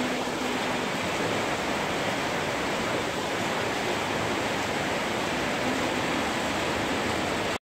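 Heavy rain pours down and drums on metal roofs outdoors.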